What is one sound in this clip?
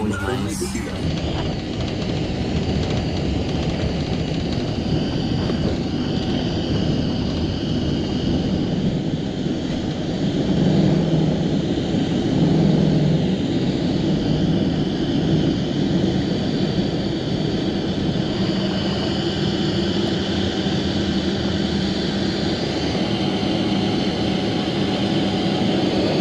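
Jet engines roar steadily as an airliner speeds down the runway and climbs.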